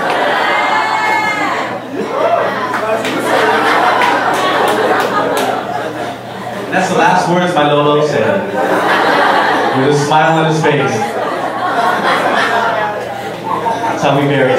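A man laughs loudly into a microphone.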